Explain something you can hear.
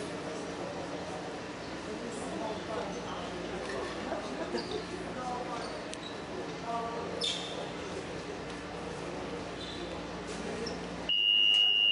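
A man speaks firmly to a group of players nearby.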